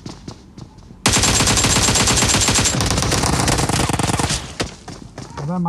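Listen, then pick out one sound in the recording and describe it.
Rapid automatic gunfire rattles loudly and close.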